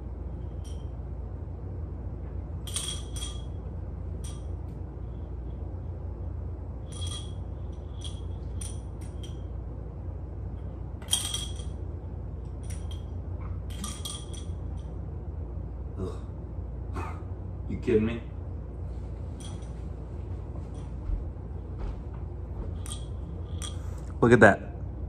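A marble rattles and clinks inside a glass bottle.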